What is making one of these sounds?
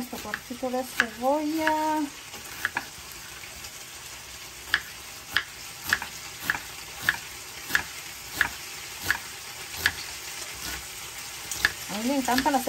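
A knife chops an onion on a wooden cutting board with regular sharp thuds.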